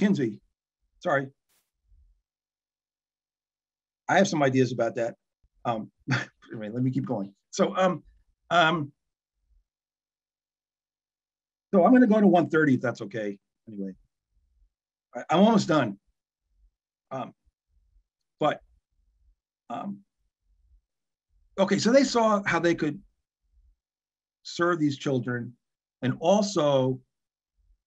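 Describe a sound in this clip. An older man talks calmly into a microphone, heard through an online call, with frequent pauses.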